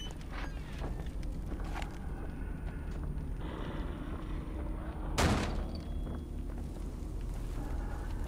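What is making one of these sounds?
Footsteps thud slowly on a stone floor.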